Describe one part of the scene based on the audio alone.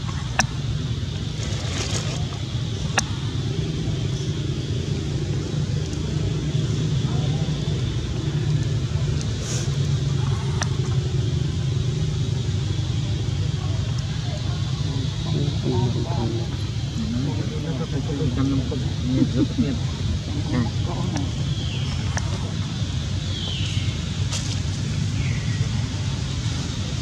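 A baby monkey suckles with soft wet smacking sounds.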